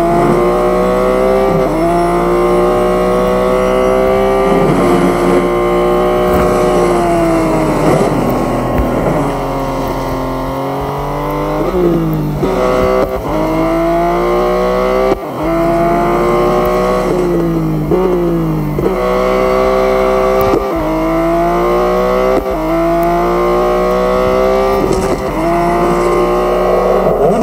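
A racing car engine roars loudly, its pitch rising through the gears and dropping when it slows.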